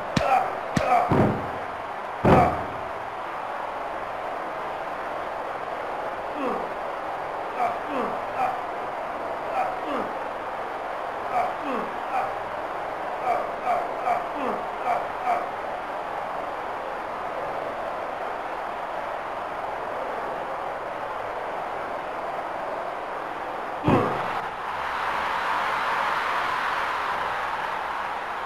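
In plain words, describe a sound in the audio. A crowd roars and cheers steadily.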